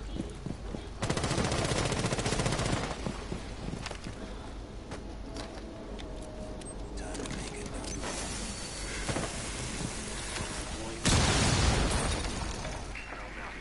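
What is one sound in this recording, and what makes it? A wall bursts apart with a loud blast.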